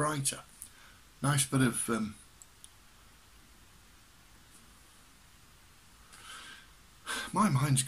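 An older man speaks calmly and close up, in short bursts with pauses.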